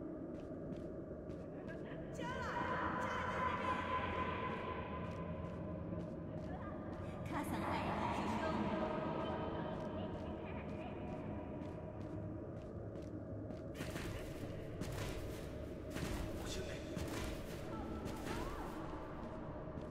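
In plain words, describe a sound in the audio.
Footsteps rustle softly through dry grass.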